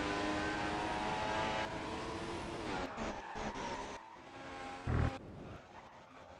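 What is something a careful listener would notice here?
A racing car engine whines loudly at high revs, then drops away.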